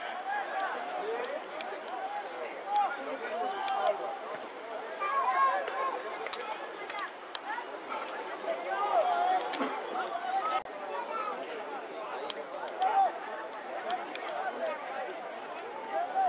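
Rugby players shout and call out to each other outdoors.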